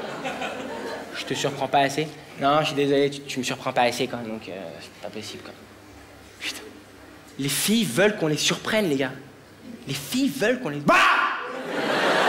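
A young man speaks with animation through a microphone to an audience.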